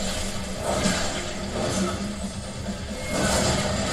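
An explosion bursts and crackles.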